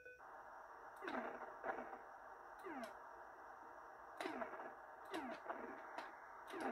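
Short falling electronic zaps from a retro video game fire again and again.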